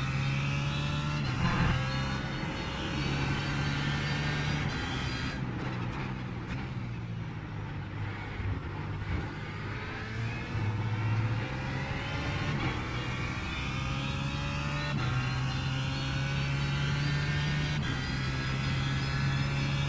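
A racing car engine roars, its pitch climbing and dropping as it shifts gears.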